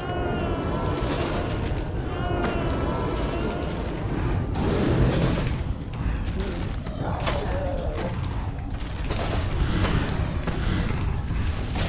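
Magic blasts crackle and zap amid a battle.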